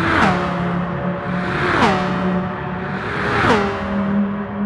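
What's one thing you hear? A racing car engine roars and shifts up through the gears as the car speeds past.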